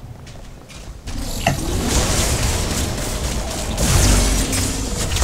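Magical blasts whoosh and crackle in a fight.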